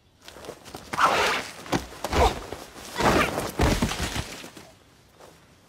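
Two people scuffle and a body thuds onto the ground.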